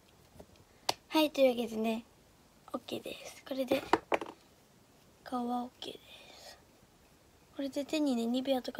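A young girl talks close by, brightly and with animation.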